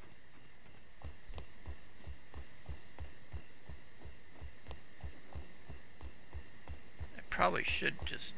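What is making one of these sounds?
Footsteps patter quickly and steadily through grass.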